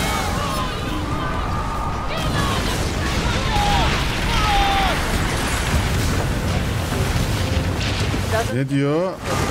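Cannons boom loudly.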